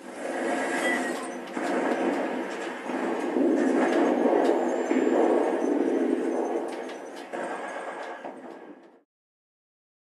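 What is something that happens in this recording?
Loud battle noise with gunfire and explosions plays from a television.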